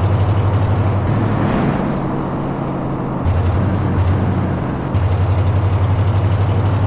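A heavy truck engine rumbles and throbs as the truck drives along.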